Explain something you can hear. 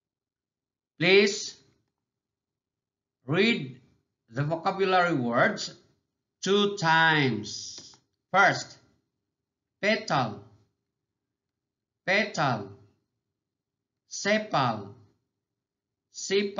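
A man speaks clearly and slowly into a close microphone, pronouncing single words with pauses between them.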